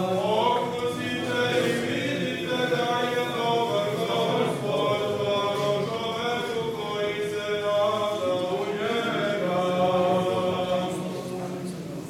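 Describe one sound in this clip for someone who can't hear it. Several voices chant a melody together in a large echoing hall.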